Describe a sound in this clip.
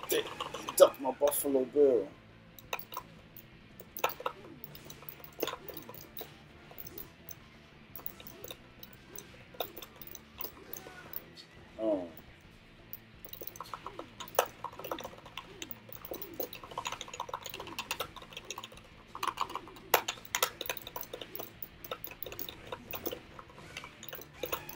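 Upbeat game music plays throughout.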